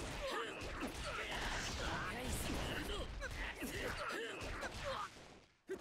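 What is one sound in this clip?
Energy blasts burst with a crackling roar.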